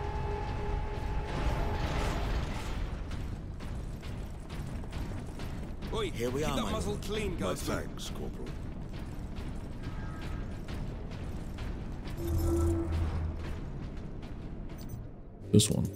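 Heavy armoured footsteps clank on a metal floor.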